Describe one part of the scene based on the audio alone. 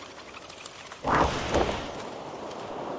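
A magical teleport sound effect chimes.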